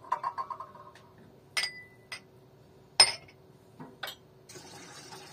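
Dishes clink and clatter.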